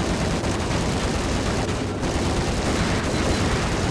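Gunshots fire rapidly, echoing in a large hall.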